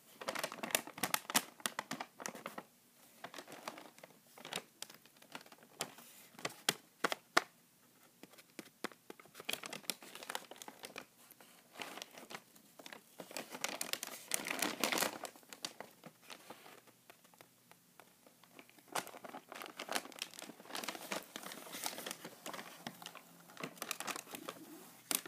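A paper bag crinkles and rustles as hands handle and open it.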